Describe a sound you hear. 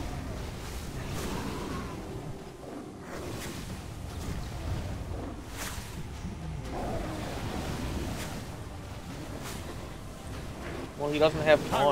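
Magic spells whoosh and crackle during a battle.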